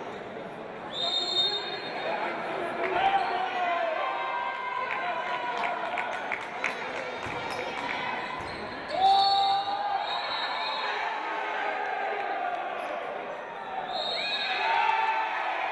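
A referee's whistle blows short, sharp blasts.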